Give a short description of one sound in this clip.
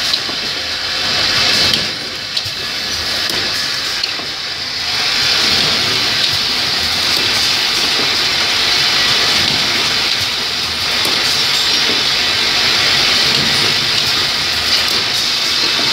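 A machine's press clicks and thumps.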